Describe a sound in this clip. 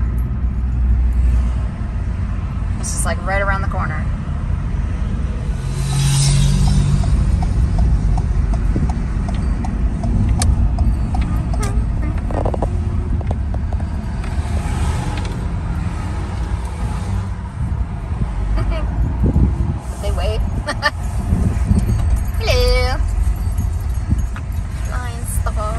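A car drives on an asphalt road, with a low road rumble heard from inside.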